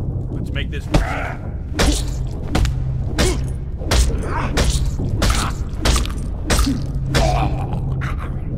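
Fists thud hard against a body in a fight.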